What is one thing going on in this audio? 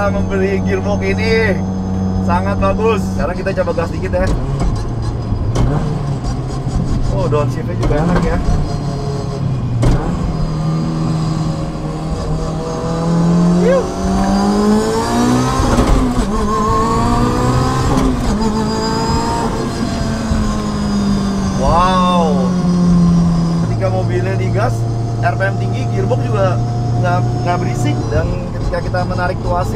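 A car engine hums steadily, then revs hard and rises in pitch as the car speeds up, before settling down again.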